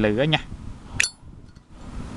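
A metal lighter lid snaps open with a sharp click.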